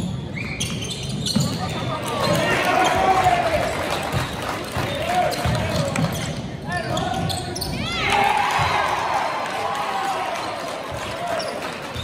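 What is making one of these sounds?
A crowd of spectators cheers and shouts in an echoing gym.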